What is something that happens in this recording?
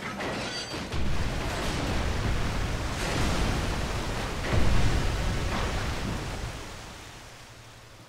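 A deep explosion booms and rumbles, then slowly dies away.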